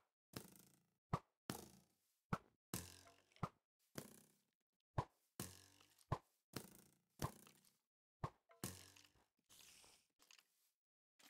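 Arrows are shot from a bow again and again, each with a sharp thud.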